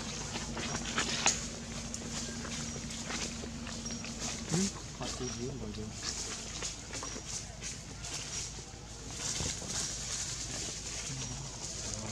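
Dry leaves rustle and crunch under a monkey's feet.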